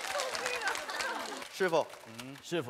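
A studio audience of young women laughs and cheers.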